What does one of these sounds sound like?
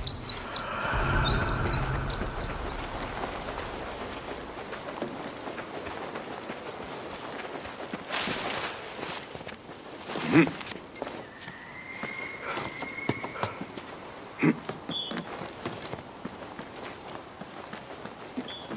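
Footsteps run on sand and rock.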